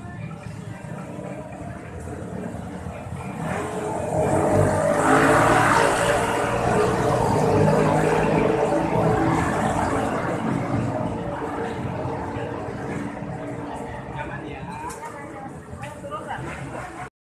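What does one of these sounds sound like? Nearby adults chatter outdoors.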